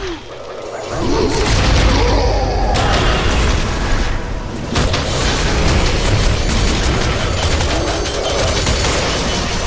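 Loud blasts and crackling magic effects clash in a fight.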